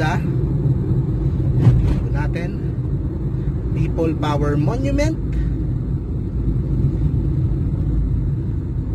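A car engine hums steadily from inside the moving car.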